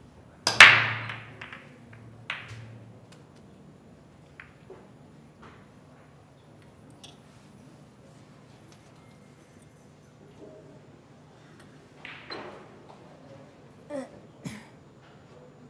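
Snooker balls click against each other and the cushions as they roll.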